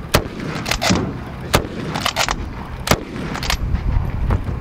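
A rifle fires loud sharp shots outdoors.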